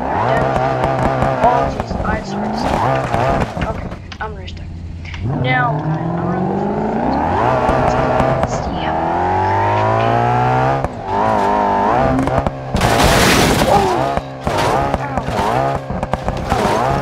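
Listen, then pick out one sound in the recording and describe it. A racing car engine roars and revs, rising in pitch as it speeds up.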